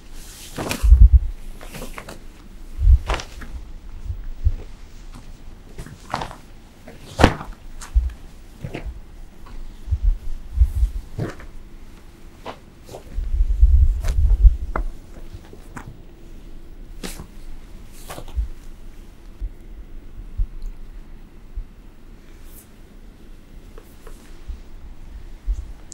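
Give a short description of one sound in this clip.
Long fabric sleeves swish and snap through the air.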